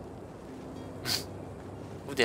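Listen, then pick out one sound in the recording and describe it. A radish pops out of the soil with a short squeak.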